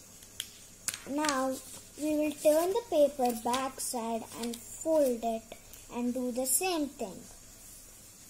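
A child speaks close by with animation.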